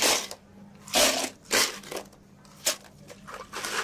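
Ice cubes clatter and rattle into a plastic cup.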